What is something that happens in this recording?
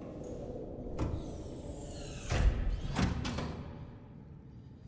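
A heavy hatch door whooshes and clunks open.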